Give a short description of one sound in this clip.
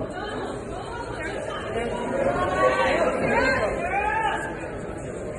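A crowd of spectators chatters and shouts in a large echoing hall.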